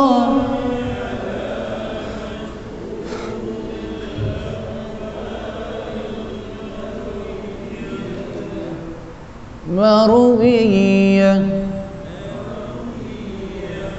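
An elderly man chants in a melodic voice through a microphone, echoing in a large hall.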